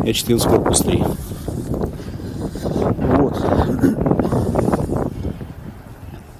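Wind gusts and buffets loudly outdoors, then eases.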